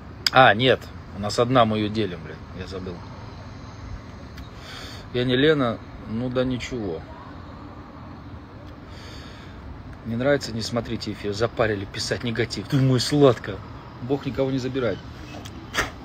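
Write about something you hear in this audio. A man talks casually and close by, in short bursts.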